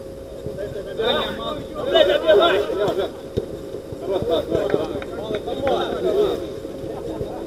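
Young men shout and call out to each other outdoors across an open pitch.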